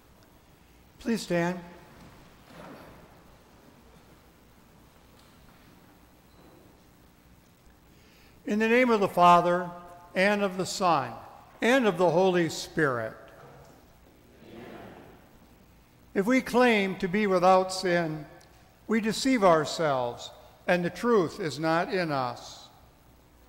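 A man speaks slowly and calmly through a microphone in an echoing hall.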